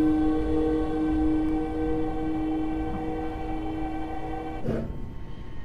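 An electric train motor whines steadily, then cuts off.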